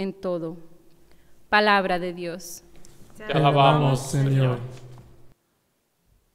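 A young woman speaks calmly through a microphone.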